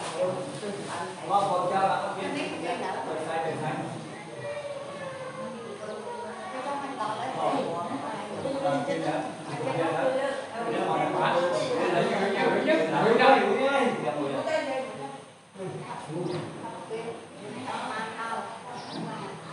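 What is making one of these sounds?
Dishes clink as food is set out.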